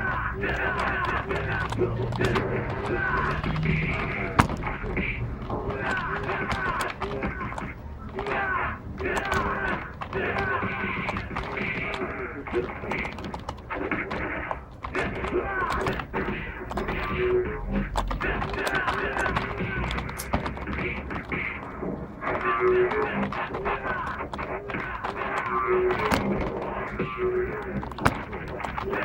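Punches and hit effects from a fighting video game sound through a television speaker.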